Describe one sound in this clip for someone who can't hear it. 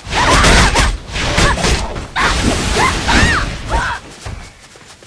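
Weapons clash and strike heavily in a fight.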